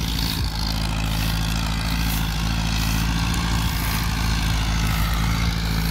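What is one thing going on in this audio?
A tractor engine drones steadily in the distance.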